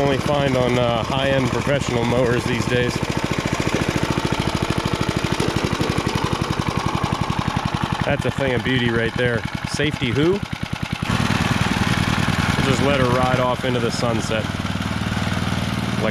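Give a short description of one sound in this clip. A lawn mower engine chugs steadily nearby.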